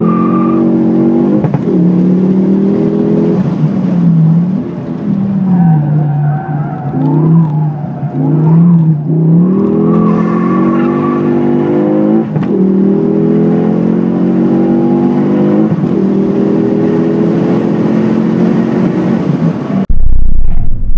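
A car engine revs hard, climbing in pitch and dropping at each gear change.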